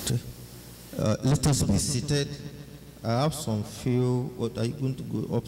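A man speaks with animation into a microphone, heard through a loudspeaker in an echoing room.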